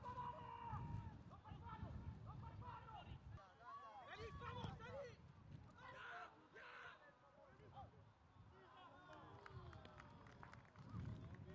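Young men shout and call out to each other across an open pitch.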